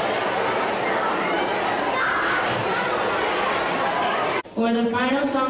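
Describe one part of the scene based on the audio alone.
A crowd of children chatters and shouts noisily.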